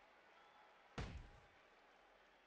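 A heavy blow thuds in a video game fight.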